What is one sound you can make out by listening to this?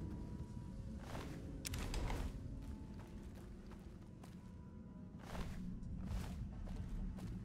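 Footsteps crunch slowly on rocky ground.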